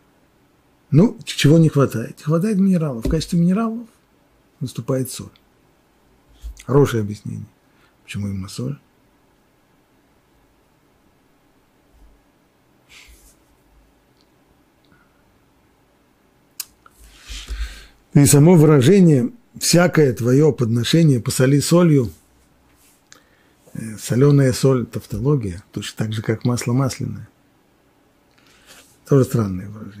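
An elderly man speaks calmly and clearly into a microphone, with pauses.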